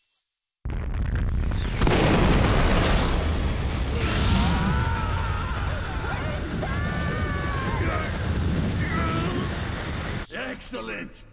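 A huge explosion roars and rumbles loudly.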